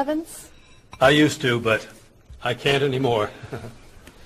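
A middle-aged man answers calmly.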